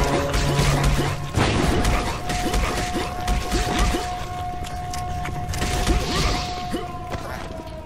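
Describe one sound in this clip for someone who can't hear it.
Explosions boom and fire roars.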